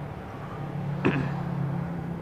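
A test probe taps against metal once.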